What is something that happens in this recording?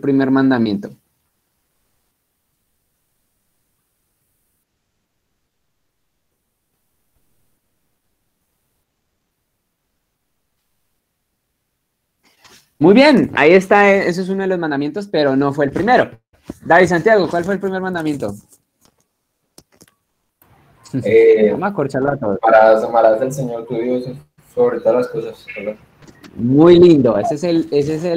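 A young man speaks with animation over an online call.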